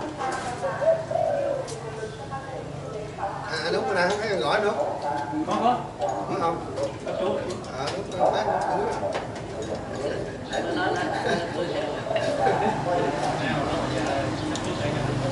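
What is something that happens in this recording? Several men talk and chatter close by.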